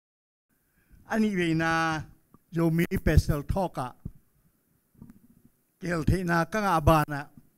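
An elderly man speaks calmly into a microphone, heard through a loudspeaker.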